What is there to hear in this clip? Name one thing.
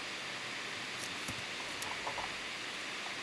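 Soft clicks sound as a menu opens.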